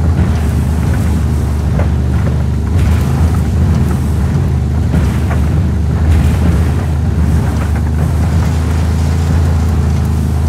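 Tyres crunch over rocky, snowy ground.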